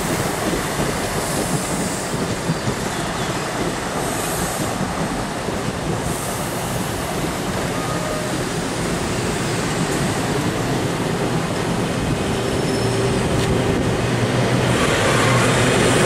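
A passenger train rushes past close by, its wheels rumbling and clattering on the rails.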